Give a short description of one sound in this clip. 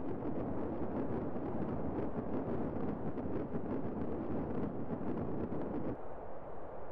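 Wind rushes past steadily during a fall.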